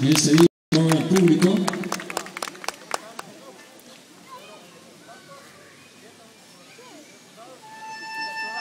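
A crowd murmurs in the distance outdoors.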